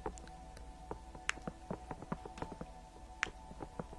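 A young woman makes soft kissing sounds close to a microphone.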